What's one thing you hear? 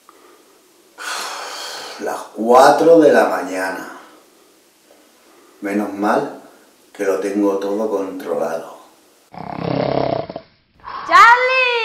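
A young man speaks close by, with animation.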